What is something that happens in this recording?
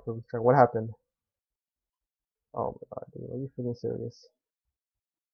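A young man speaks close to the microphone, in short bursts.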